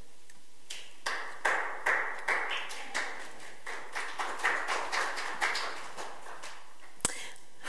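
Pens scratch on paper in short strokes.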